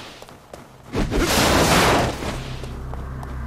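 A wooden barrel smashes under heavy blows.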